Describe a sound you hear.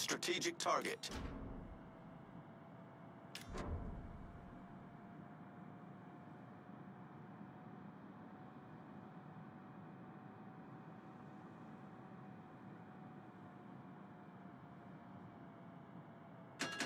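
Water rushes and splashes along a ship's hull.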